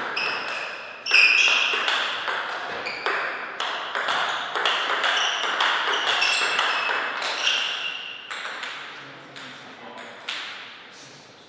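A table tennis ball clicks quickly back and forth off paddles and the table.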